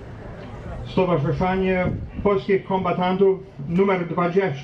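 A man sings slowly through a loudspeaker outdoors.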